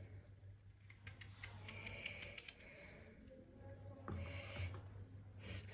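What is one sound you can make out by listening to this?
A knife cuts through a raw potato with soft, crisp clicks.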